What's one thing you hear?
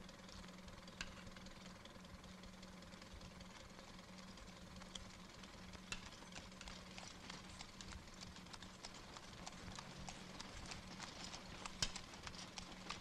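A spoon clinks against a metal tin.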